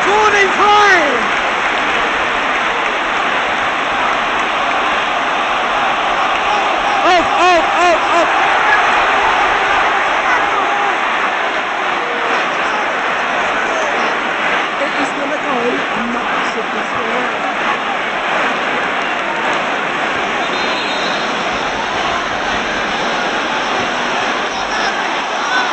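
A large stadium crowd roars and murmurs steadily outdoors.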